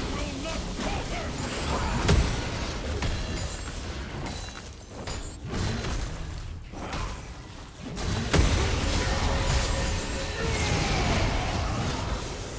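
Video game combat sound effects clash and burst.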